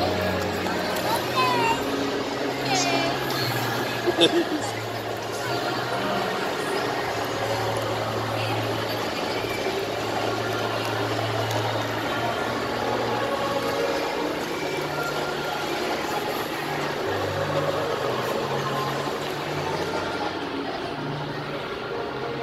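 An electric ride-on toy whirs as it rolls along.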